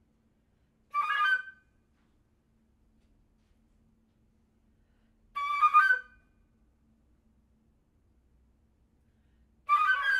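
A flute plays short, bright bursts of notes.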